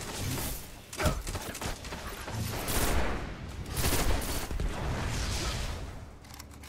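Game gunfire bursts out in loud, rapid shots.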